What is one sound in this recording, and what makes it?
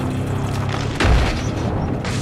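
A car body thumps hard over a bump.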